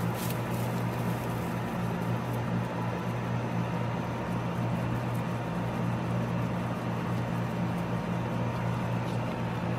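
Hay rustles as a guinea pig moves through it.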